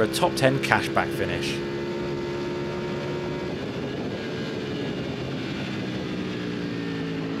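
A motorcycle engine roars at high revs close by.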